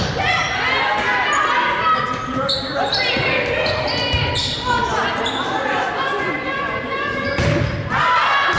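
A volleyball is struck with loud slaps.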